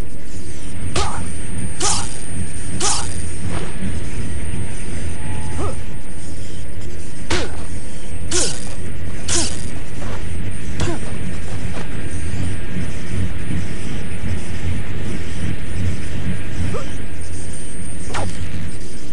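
Sharp whooshing swishes sound as a web line shoots out.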